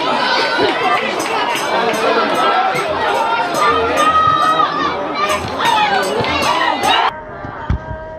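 A crowd of spectators shouts and chatters loudly nearby.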